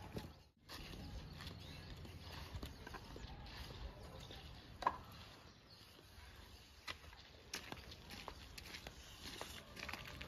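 Bricks clatter as they are tossed and dropped onto a pile.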